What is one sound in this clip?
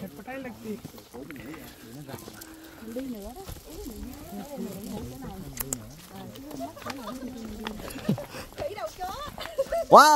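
Footsteps shuffle on a paved path.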